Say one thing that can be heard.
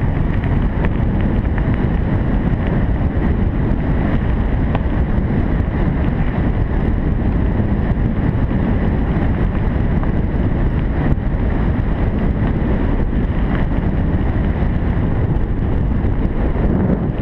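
Tyres crunch and rattle over gravel.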